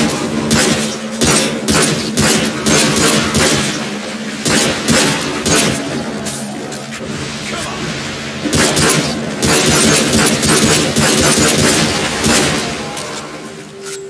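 Gunshots crack rapidly in a reverberant tunnel.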